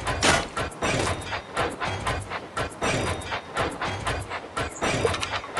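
A toy train chugs along a track in a rhythmic pattern.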